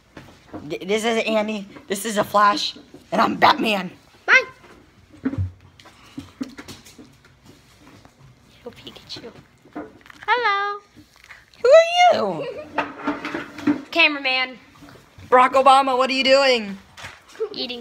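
A teenage boy talks animatedly and close up, in a high, playful voice.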